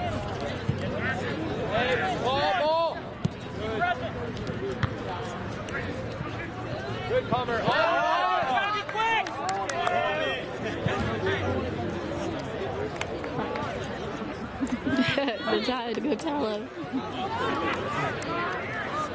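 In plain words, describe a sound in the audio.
Young men shout and call out across an open field.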